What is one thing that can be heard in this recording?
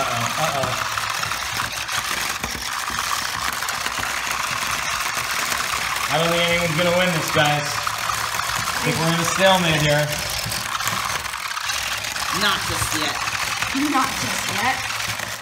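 Plastic toy robots clack and clatter against each other.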